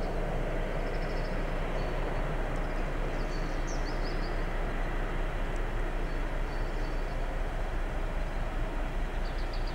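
A locomotive rumbles steadily as it approaches along the tracks.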